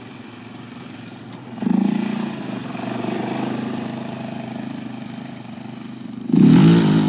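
A quad bike engine revs loudly nearby, rising and falling.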